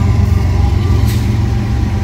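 A level crossing bell rings.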